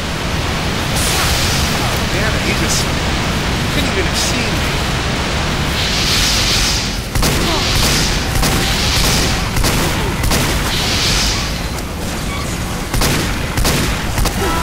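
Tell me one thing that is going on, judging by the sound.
A revolver fires sharp shots.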